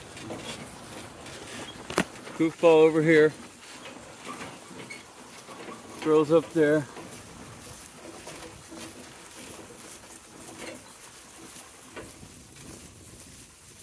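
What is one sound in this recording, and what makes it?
Harness chains jingle softly.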